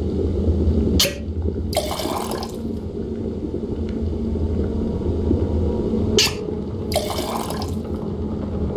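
Short magical whooshes sound as objects drop into a bubbling cauldron.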